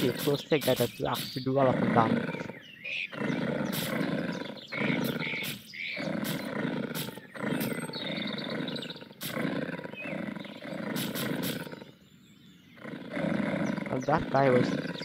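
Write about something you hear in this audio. Large beasts roar and growl as they fight.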